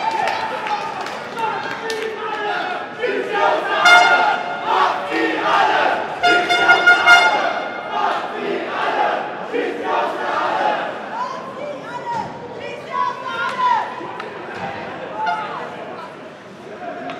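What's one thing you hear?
A crowd of fans chants and sings loudly in a large echoing arena.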